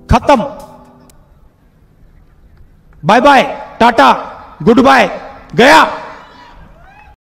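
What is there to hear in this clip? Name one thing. A man speaks forcefully through a loudspeaker, his words echoing outdoors.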